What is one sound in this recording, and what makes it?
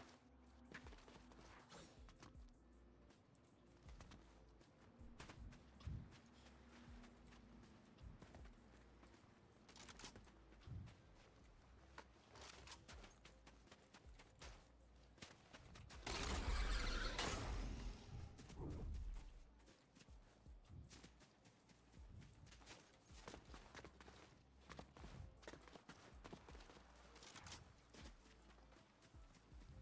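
Quick footsteps patter in a video game.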